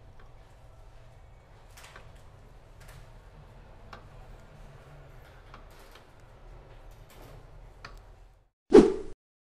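Metal tools click and tap against an engine casing.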